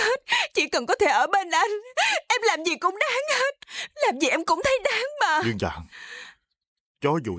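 A young woman sobs and wails loudly up close.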